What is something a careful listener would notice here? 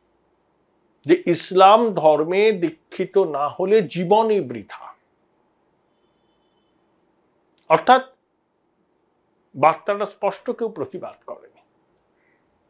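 A middle-aged man speaks with animation close to a microphone, pausing between phrases.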